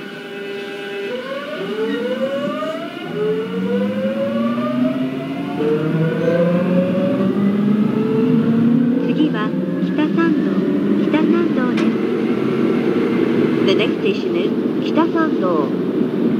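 An electric train's motor whines, rising in pitch as the train speeds up.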